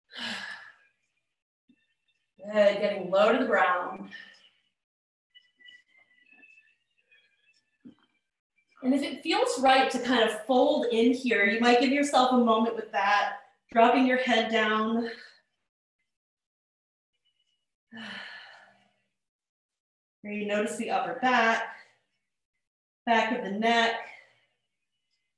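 A woman speaks calmly into a nearby microphone, pausing often.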